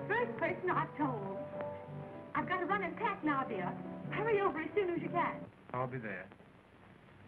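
A young woman talks with animation into a telephone.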